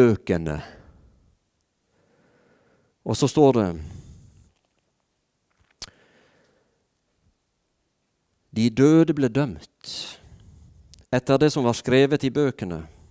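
A middle-aged man speaks with animation through a microphone, pausing between phrases.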